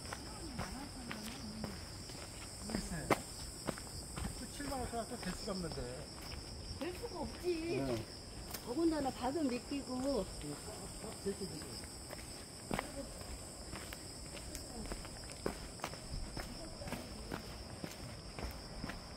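Footsteps crunch on a dry forest path.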